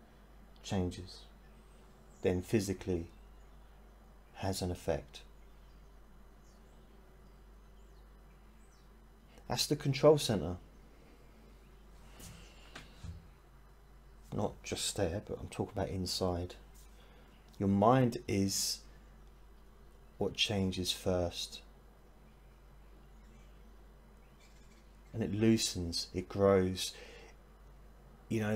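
A middle-aged man speaks calmly and thoughtfully into a close microphone, with pauses between phrases.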